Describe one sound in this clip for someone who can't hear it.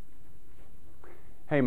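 A young man starts to speak calmly and close up.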